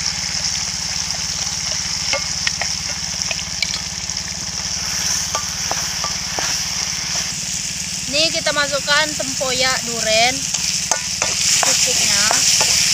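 Sauce sizzles and bubbles in hot oil.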